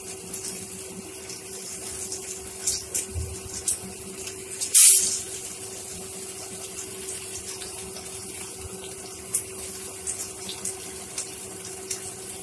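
Oil sizzles and pops in a frying pan.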